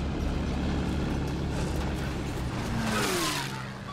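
A tank engine rumbles deeply close by.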